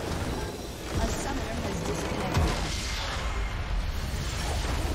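A structure explodes with a deep boom.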